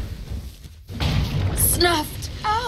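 A burst of fire crackles and booms.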